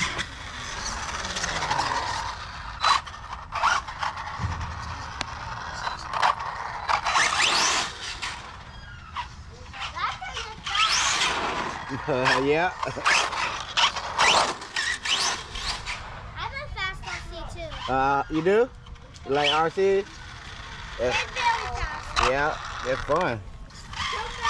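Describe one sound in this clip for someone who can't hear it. A toy car's electric motor whines loudly as it races past.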